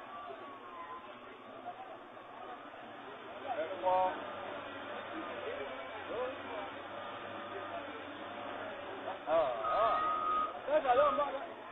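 A crowd of men talk and shout excitedly nearby.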